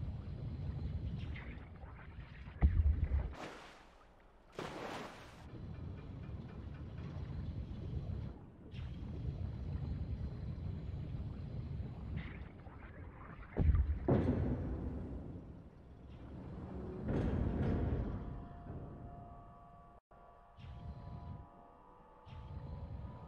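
A small submersible's motor hums and churns underwater.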